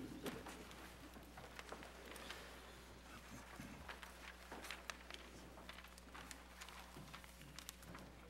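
A man speaks quietly through a microphone in a large echoing room.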